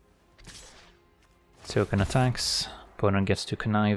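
A digital card game plays a swooshing magical effect.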